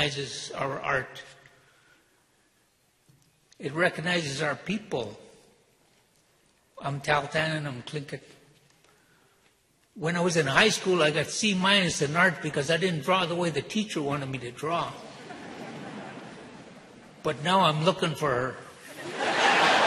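An elderly man speaks calmly, with pauses, through a microphone in a large hall.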